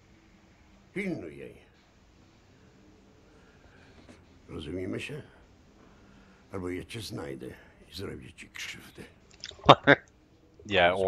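An elderly man speaks in a low, threatening voice.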